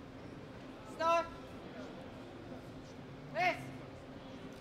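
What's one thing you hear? A man calls out short, loud commands in a large echoing hall.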